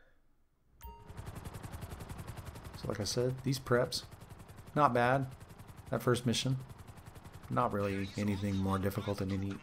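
Helicopter rotor blades chop rapidly.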